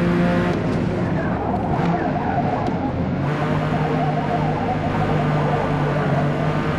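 A car engine roars loudly, its pitch dropping as the driver brakes and shifts down.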